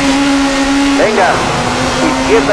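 A rally car engine rises sharply in pitch as the car pulls away.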